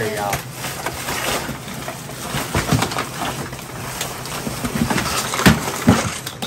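Plastic bags rustle and crinkle as they are pulled out.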